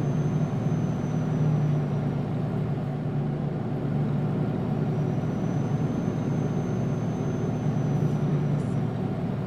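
Tyres roll on a road with a steady rumble.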